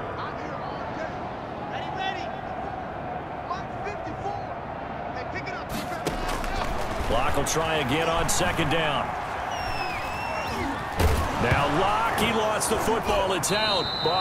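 A large crowd cheers and roars in a stadium, swelling louder as play unfolds.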